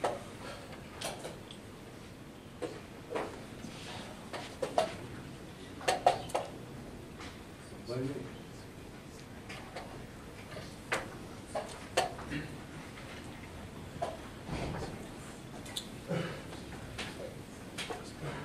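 Chess pieces click and knock on wooden boards around a quiet hall.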